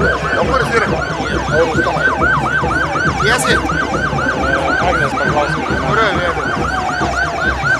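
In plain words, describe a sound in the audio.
A siren yelps rapidly and steadily nearby.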